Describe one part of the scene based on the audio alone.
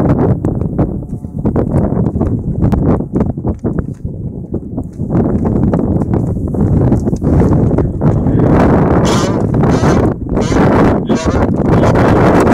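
Strong wind gusts and buffets loudly outdoors.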